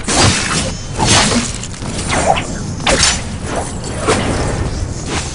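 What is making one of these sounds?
A sword slashes through the air with sharp swishes.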